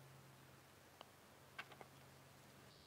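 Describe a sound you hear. A golf ball drops into the cup with a soft rattle.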